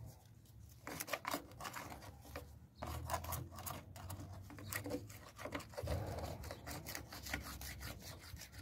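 A plastic pipe fitting scrapes and knocks against another pipe.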